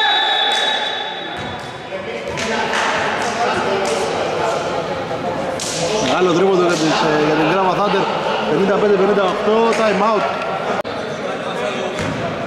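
Basketballs bounce on a wooden floor in a large echoing hall.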